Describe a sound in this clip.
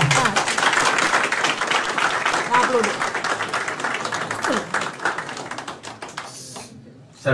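Hands clap in steady applause.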